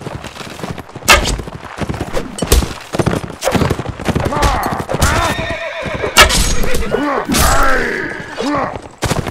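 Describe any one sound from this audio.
Swords and shields clash and thud in a close fight.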